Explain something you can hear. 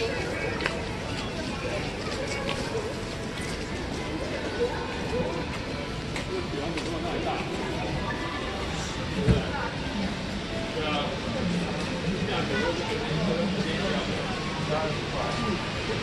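Footsteps tap and splash on a wet pavement.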